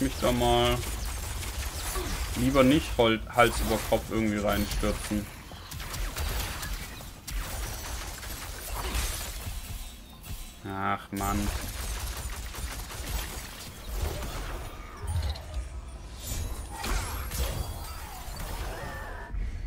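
Magic bolts zap and crackle.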